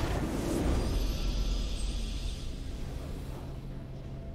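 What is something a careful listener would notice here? A triumphant game fanfare rings out and fades.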